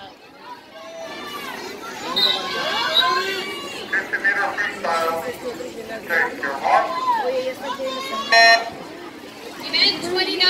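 A crowd of people cheers and shouts outdoors.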